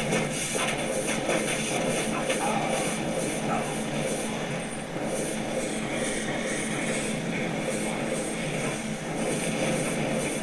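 Weapons strike monsters with repeated thuds.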